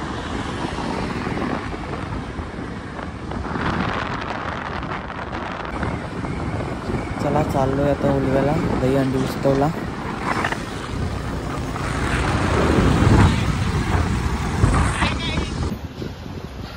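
Wind rushes past a moving motorbike.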